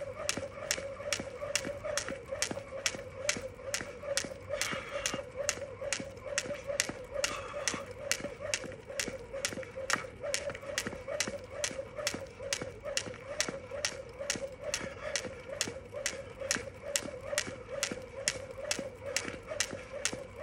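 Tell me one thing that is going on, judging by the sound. A jump rope slaps the ground in a quick, steady rhythm.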